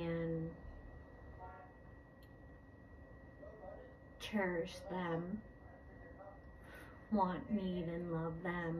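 A woman speaks calmly and expressively in a quiet room, with pauses between phrases.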